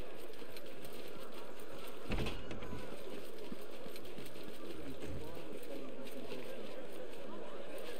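Footsteps scuff softly on stone.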